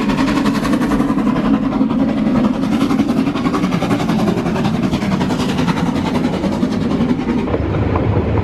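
A steam locomotive chugs past, close by.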